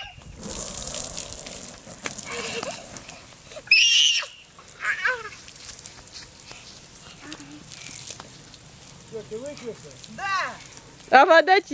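Water sprays from a garden hose and splashes on the ground.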